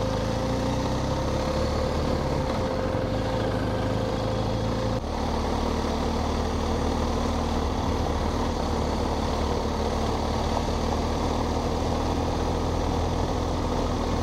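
Tyres crunch over gravel.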